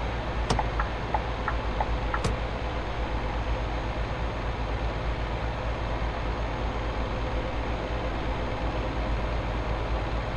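A diesel truck engine drones as the truck cruises on a motorway, heard from inside the cab.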